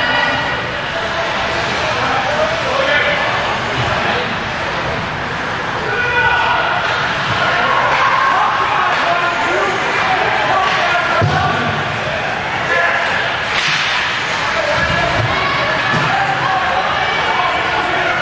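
A crowd of spectators chatters and calls out in a large echoing rink.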